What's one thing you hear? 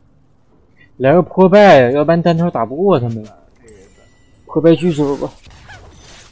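A young man speaks with animation into a nearby microphone.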